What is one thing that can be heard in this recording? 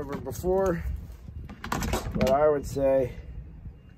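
A heavy metal part clunks onto a wooden bench.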